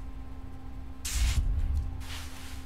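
A soft whoosh plays as a card is drawn, twice in quick succession.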